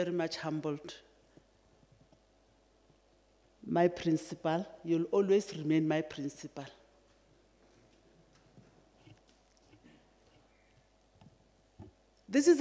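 A woman speaks calmly into a microphone, in pauses.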